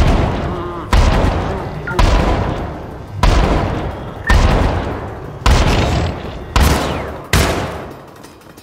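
A gun fires loud booming shots that echo through a large hall.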